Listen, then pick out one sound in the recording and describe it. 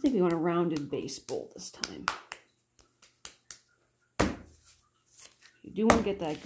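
Hands pat and press a lump of soft clay.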